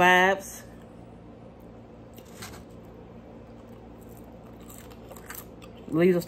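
A woman chews food with wet, smacking sounds.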